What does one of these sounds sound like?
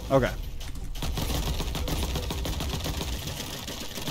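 Video game blasts and explosions crackle and rumble.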